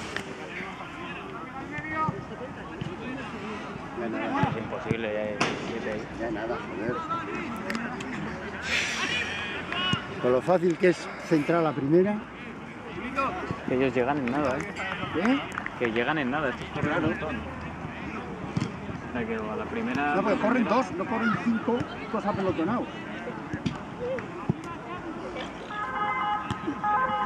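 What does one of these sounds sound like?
Men shout to one another across an outdoor football pitch.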